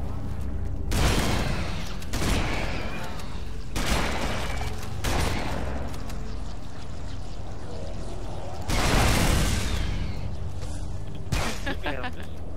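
Loud explosions boom several times.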